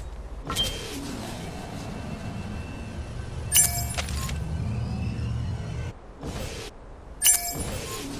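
Quick footsteps run over a hard floor.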